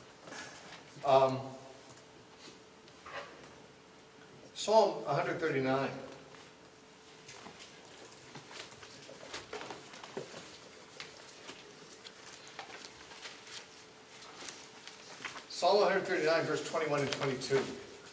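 An older man reads aloud into a microphone, pausing between phrases.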